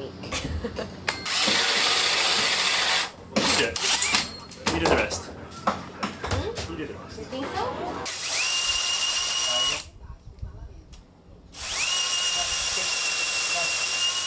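A power drill whirs loudly in bursts.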